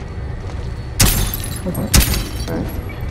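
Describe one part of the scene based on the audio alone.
A sharp bang goes off twice, close by.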